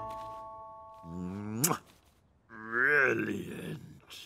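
A man makes comic humming, mumbling sounds.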